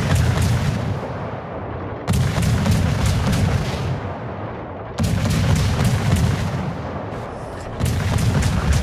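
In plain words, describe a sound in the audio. Heavy ship guns boom with a deep rumble.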